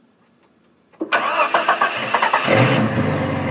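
A car engine cranks and starts up.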